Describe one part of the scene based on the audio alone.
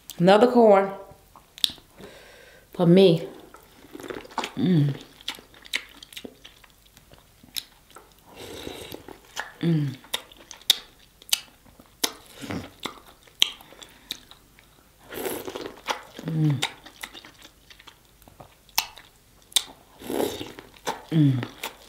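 A young woman makes short pleased humming sounds, close to a microphone.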